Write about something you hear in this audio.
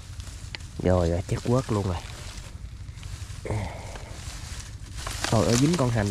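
Grass rustles as a hand pushes through it.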